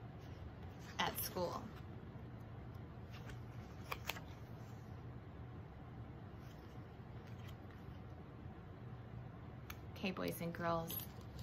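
A woman reads aloud calmly, close by.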